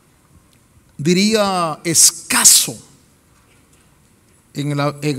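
A middle-aged man preaches with animation into a microphone, heard through loudspeakers in a large hall.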